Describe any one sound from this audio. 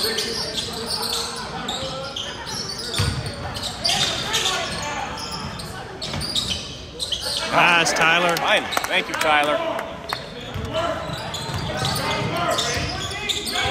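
Young players shout and call out to each other in a large echoing gym.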